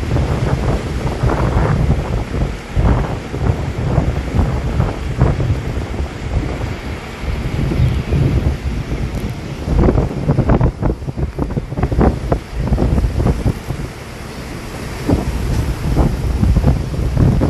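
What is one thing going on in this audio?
Wind buffets the microphone loudly while riding outdoors.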